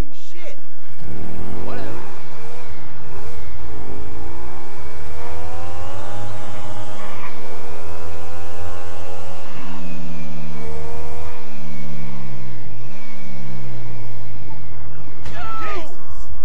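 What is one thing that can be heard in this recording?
A motorcycle engine revs up and down as it speeds along.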